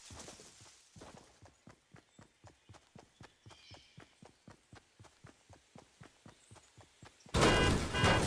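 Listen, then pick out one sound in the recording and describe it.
Footsteps tap quickly on hard ground.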